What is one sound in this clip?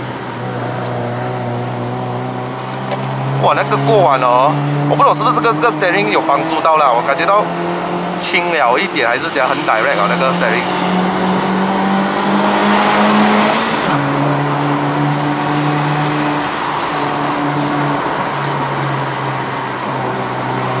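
A car engine hums steadily from inside the cabin, its pitch shifting as the car changes speed.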